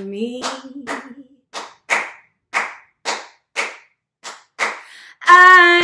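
A young woman claps her hands in a steady rhythm.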